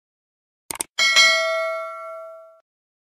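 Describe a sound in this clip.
A small bell chimes brightly and rings out.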